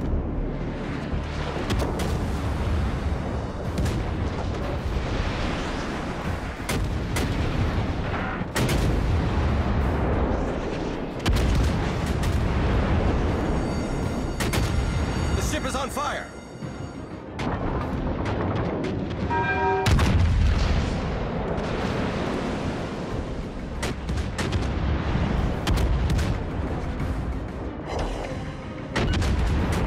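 Heavy naval guns fire in loud booming blasts.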